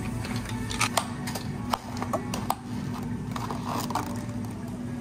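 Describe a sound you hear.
Ice clinks in plastic cups.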